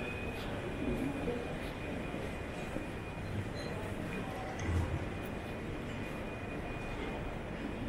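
Distant voices murmur along a quiet street outdoors.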